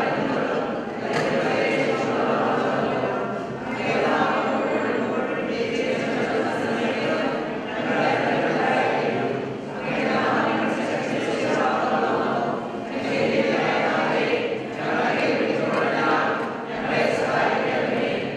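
A man chants a prayer into a microphone in an echoing hall.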